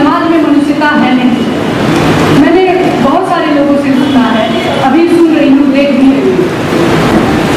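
A young woman speaks calmly into a microphone, heard through a loudspeaker in an echoing room.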